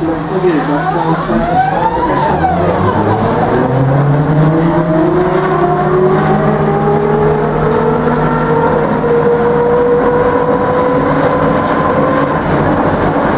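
A tram's electric motor whines and rises in pitch as the tram speeds up.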